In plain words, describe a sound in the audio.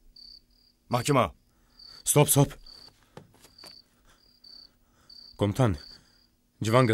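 Another man answers in a low, gruff voice close by.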